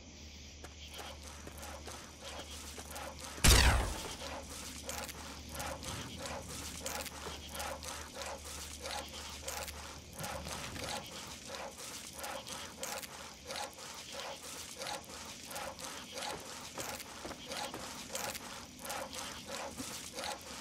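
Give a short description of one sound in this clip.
Footsteps tread on dirt.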